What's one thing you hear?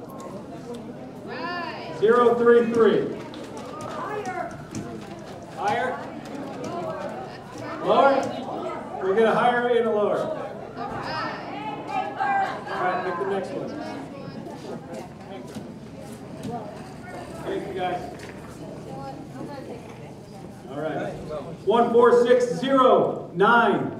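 A man speaks into a microphone over a loudspeaker in a large echoing hall.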